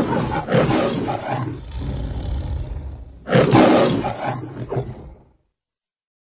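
A lion roars loudly, twice.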